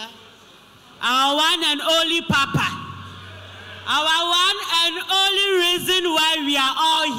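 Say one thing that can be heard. A woman speaks loudly and with animation through a microphone in a large echoing hall.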